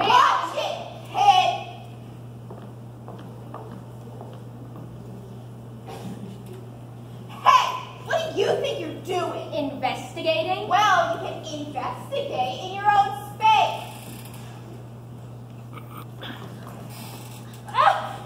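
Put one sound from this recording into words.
Young actors speak loudly and with animation in a large echoing hall.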